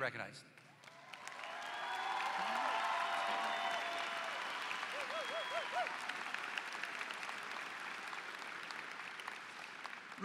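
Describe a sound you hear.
A crowd applauds and cheers loudly in a large hall.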